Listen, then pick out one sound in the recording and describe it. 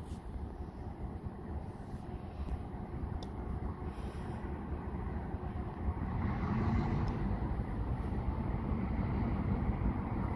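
Wind blows across the microphone outdoors, growing a little stronger.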